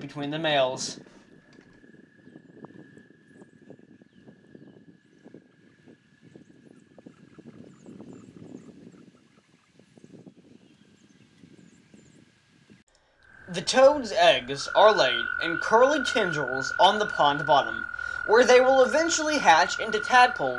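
A toad trills steadily.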